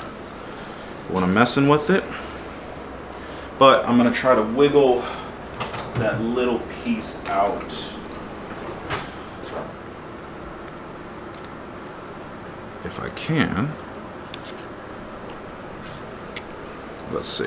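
Metal tools click and tap against engine parts.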